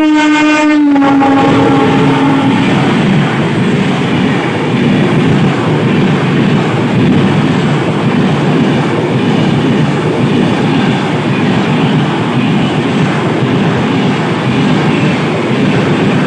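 A passing train roars and rattles close by.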